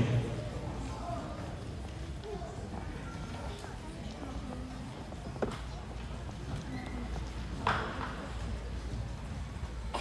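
A crowd of children and adults chatters quietly in a large echoing hall.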